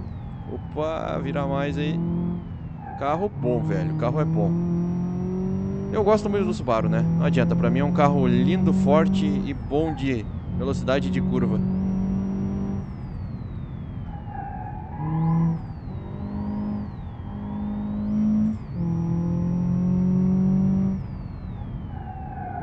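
A car engine revs up and down as gears change.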